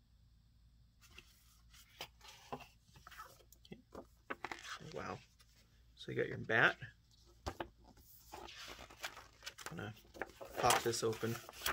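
Stiff cardboard sheets rustle and slide against each other as they are handled.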